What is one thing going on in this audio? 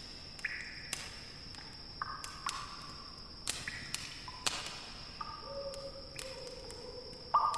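Short electronic clicks and chimes sound as game items are picked.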